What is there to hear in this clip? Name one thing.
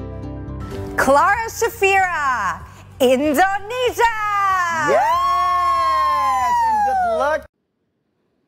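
A young woman sings loudly and with feeling into a microphone.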